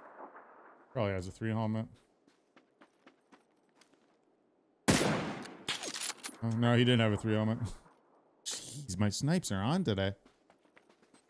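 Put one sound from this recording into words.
An adult man talks through a headset microphone.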